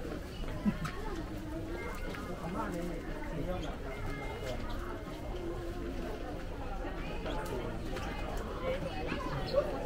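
A crowd of shoppers murmurs and chatters nearby.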